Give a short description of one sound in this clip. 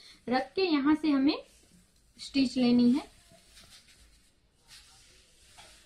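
Fabric rustles as it is shifted and smoothed by hand.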